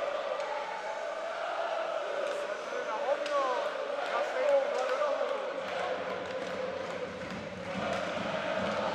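A crowd murmurs steadily in a large echoing arena.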